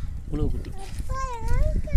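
A hand swishes water in a bucket.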